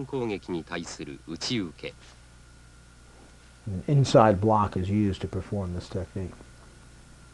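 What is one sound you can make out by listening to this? A man speaks calmly and clearly, in short bursts.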